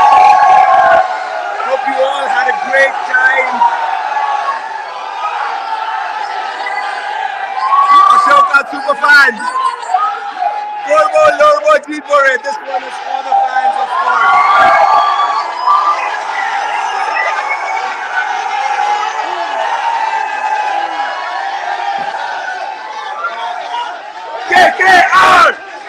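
A large crowd of young men and women cheers and shouts loudly close by.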